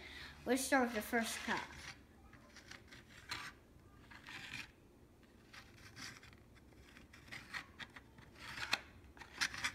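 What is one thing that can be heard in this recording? Small plastic toy pieces click and tap on a wooden table.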